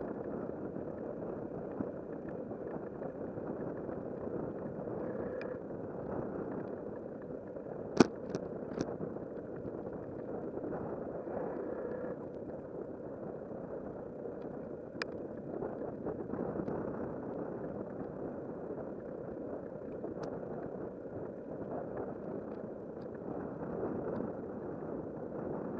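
Wind buffets steadily against the microphone outdoors.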